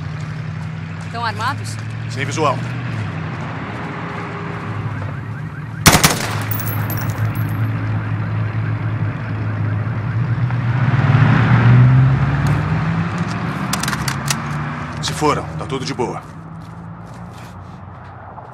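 A car engine hums and revs as the car drives past.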